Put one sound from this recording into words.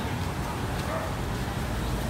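Water pours from a hose onto the ground.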